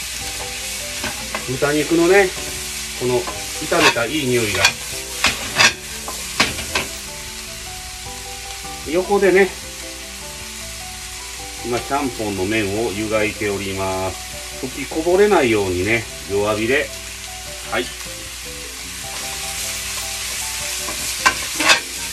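A spatula scrapes and clatters against a frying pan.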